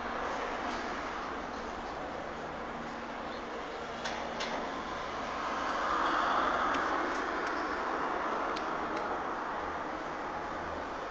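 A cat rolls and rubs its back on dry dirt.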